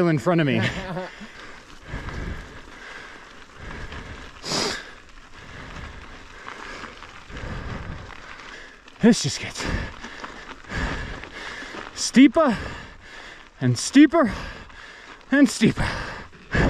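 Bike tyres crunch over loose gravel.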